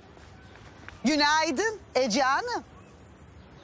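A young woman answers in a flat, quiet voice close by.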